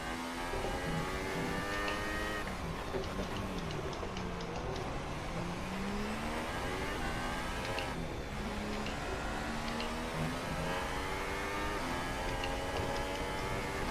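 A racing car engine screams at high revs, dropping in pitch under braking and rising again as it accelerates.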